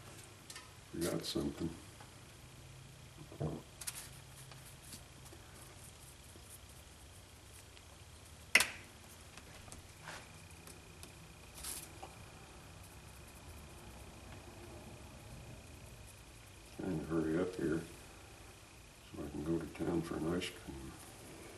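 An elderly man speaks calmly in short bursts nearby.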